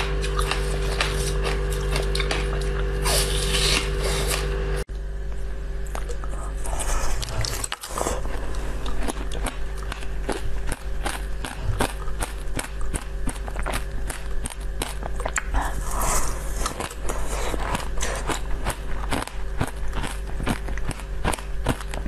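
A woman bites and chews crunchy food close to a microphone.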